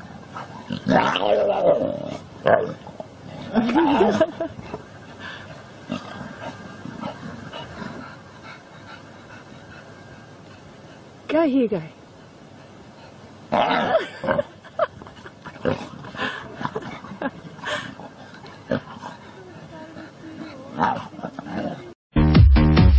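Young animals growl and snarl while playing close by.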